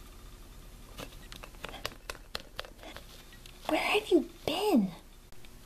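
Small plastic toys knock softly against each other.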